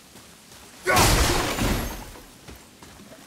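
Rocks tumble and clatter.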